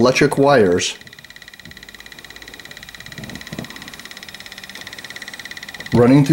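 An electronic meter gives off a rapid buzzing tone.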